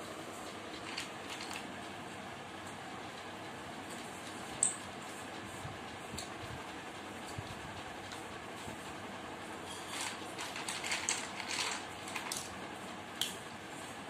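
Small plastic bricks click and clatter on a hard floor.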